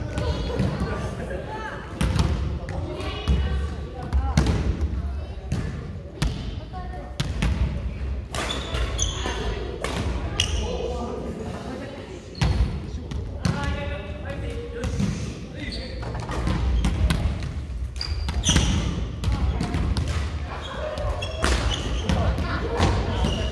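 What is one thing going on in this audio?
Badminton rackets smack a shuttlecock back and forth.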